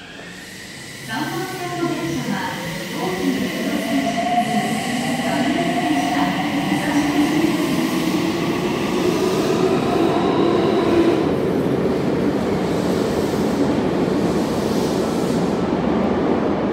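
A train rumbles along the track beyond the platform doors, growing louder.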